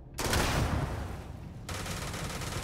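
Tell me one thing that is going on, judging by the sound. A loud explosion booms close by.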